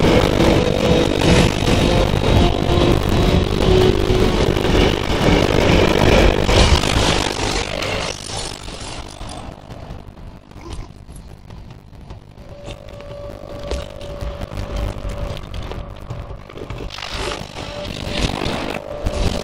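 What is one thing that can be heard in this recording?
A large beast snarls with open jaws.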